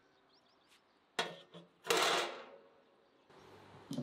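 A metal grill grate clanks down onto a barbecue.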